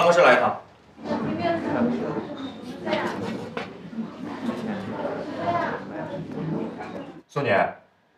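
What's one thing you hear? A group of teenagers chatter and laugh in a room.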